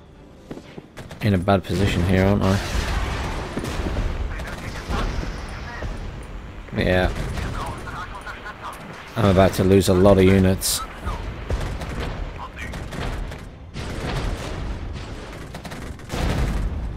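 Artillery shells burst in rapid, rumbling explosions.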